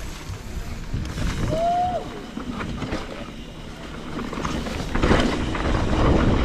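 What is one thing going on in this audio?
Bike tyres rumble and crunch over a bumpy dirt track, growing louder.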